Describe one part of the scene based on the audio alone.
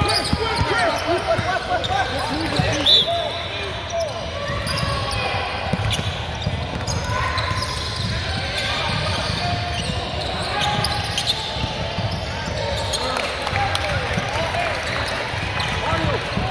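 Young men call out to each other across an echoing gym.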